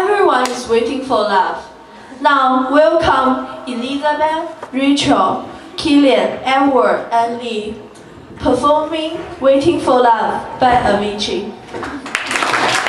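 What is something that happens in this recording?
A young woman speaks into a microphone with animation, heard through loudspeakers.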